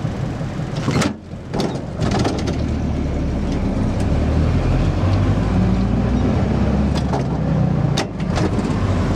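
A gear lever clunks as it is shifted.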